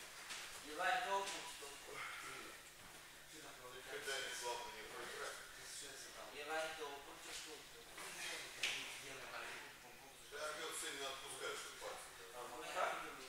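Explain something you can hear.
Young men talk casually at a distance in a large echoing hall.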